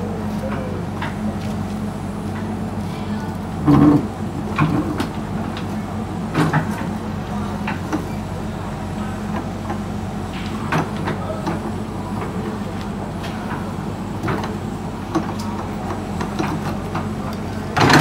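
Dirt and stones thud and scrape as an excavator bucket digs.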